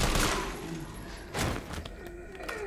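A shotgun fires with a loud, booming blast.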